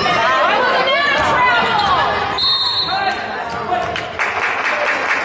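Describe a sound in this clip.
Spectators murmur in a large echoing gym.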